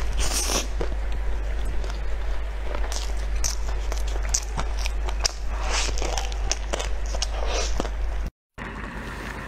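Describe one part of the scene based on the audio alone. A young woman chews food noisily, with wet smacking sounds close up.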